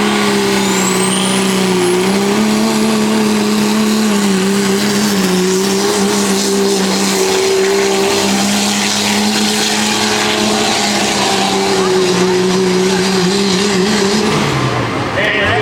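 A diesel truck engine roars loudly at full throttle.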